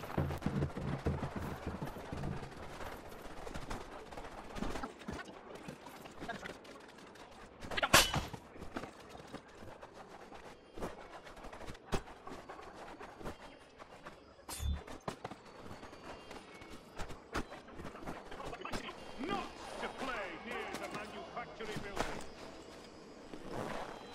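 Quick footsteps thud and crunch as a figure runs and climbs.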